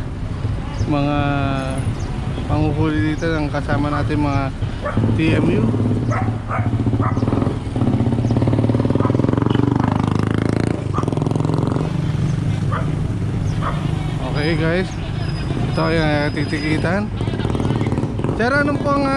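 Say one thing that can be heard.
Traffic hums steadily along a busy road.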